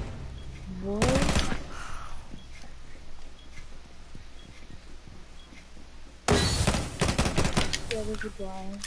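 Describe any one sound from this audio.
Rapid gunshots fire in short, loud bursts.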